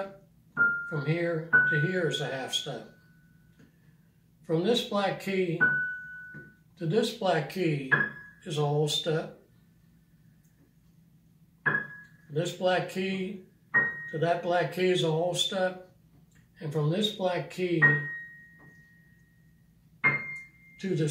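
Single piano notes ring out now and then.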